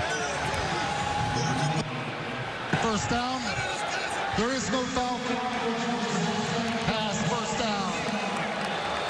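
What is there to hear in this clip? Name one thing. A man announces a call over a loudspeaker in a large open stadium.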